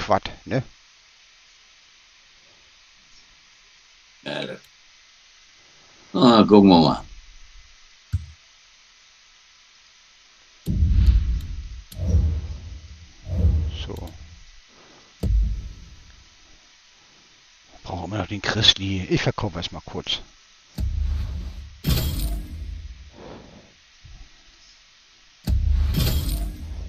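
Short electronic menu clicks and chimes sound now and then.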